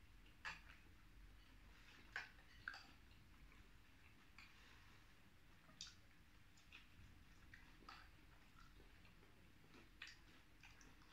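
Fried food crunches and crackles as it is bitten.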